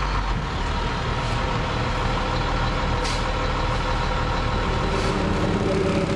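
Rakes scrape through loose asphalt.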